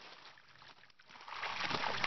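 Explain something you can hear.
Fish splash and thrash in a net.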